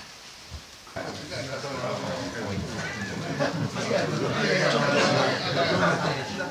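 A group of men and women chatter nearby.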